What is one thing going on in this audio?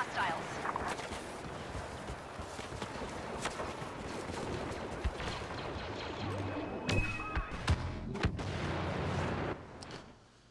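Laser guns fire in sharp bursts.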